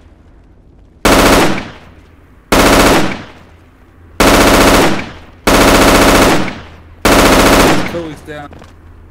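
A rifle fires several loud shots, each echoing away.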